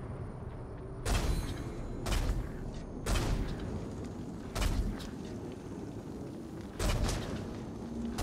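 Bowstrings snap as arrows are loosed in quick bursts.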